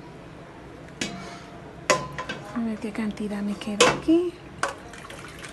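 Dry pasta pours and rattles into a pan.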